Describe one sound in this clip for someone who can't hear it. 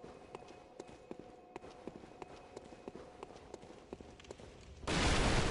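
Footsteps clatter quickly on stone.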